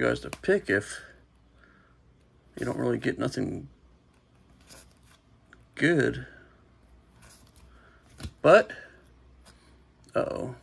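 Trading cards slide softly against one another.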